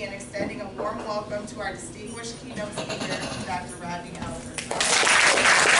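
A woman speaks into a microphone to a room.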